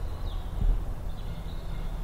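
Dry leaves rustle as a squirrel forages.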